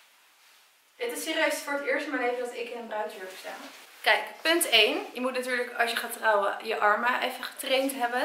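A young woman talks close by, calmly and clearly.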